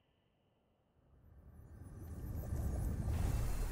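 A shimmering magical hum rises and swells.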